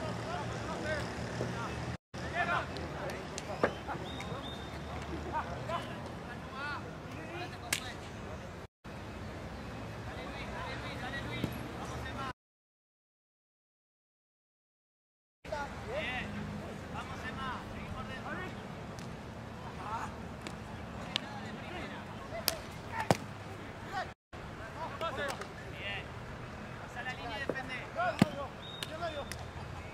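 Hockey sticks clack sharply against a ball.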